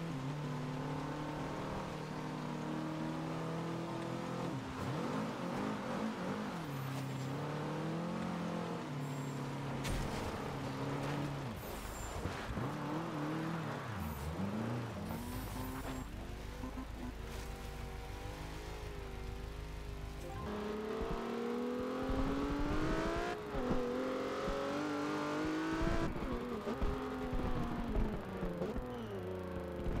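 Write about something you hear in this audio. A sports car engine revs hard while drifting.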